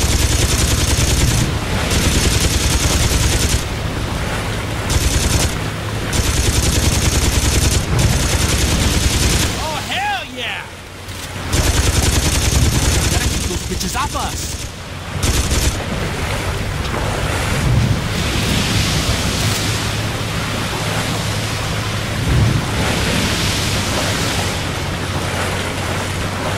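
A boat engine roars over splashing water.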